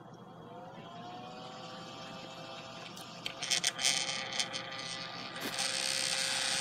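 A small cooling fan spins up with a rising whine, then hums steadily.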